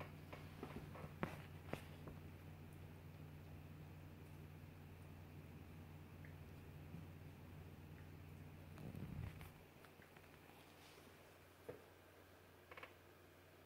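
A small dog's paws scrabble and tap on the floor.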